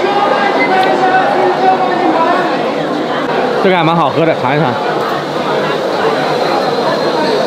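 Many people chatter in a busy hall.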